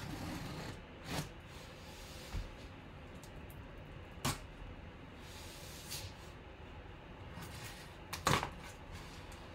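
A cardboard box thumps and scrapes as it is turned around.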